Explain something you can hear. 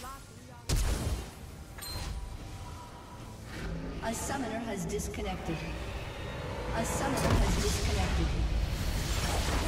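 A fantasy game's magic effects whoosh and crackle.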